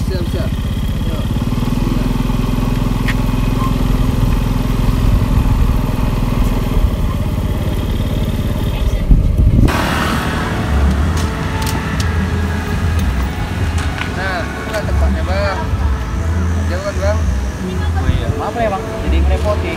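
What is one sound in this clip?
Motorcycle engines rumble as the motorcycles ride along.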